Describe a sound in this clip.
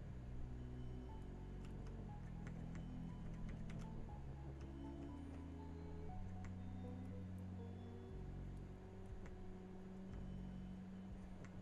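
Calm, slow electronic game music plays throughout.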